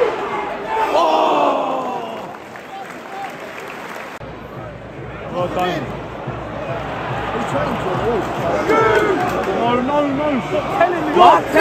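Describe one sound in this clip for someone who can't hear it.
A large stadium crowd roars and chants throughout.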